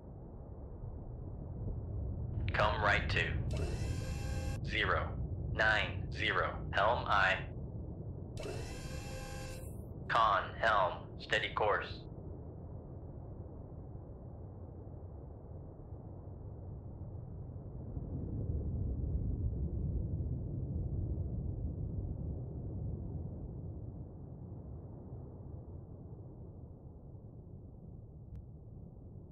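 A submarine hums low and steady underwater.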